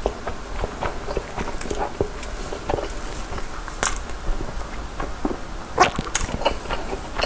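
A young man chews food noisily close to a microphone.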